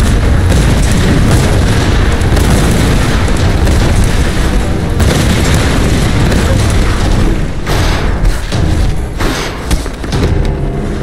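A deep rumble roars.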